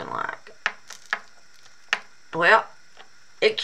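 A soft rubber mould is peeled away with light snapping clicks.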